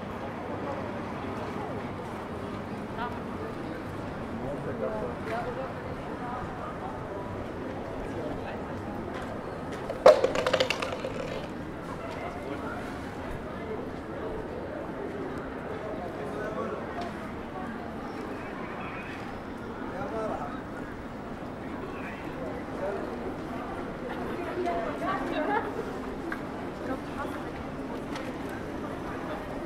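A crowd of people murmurs and talks nearby outdoors.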